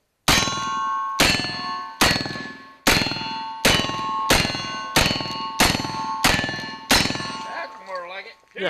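Steel targets ring out with a metallic clang after each hit.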